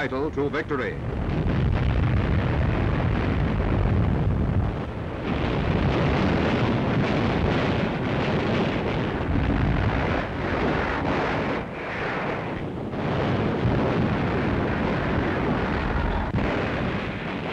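Explosions boom and roar nearby.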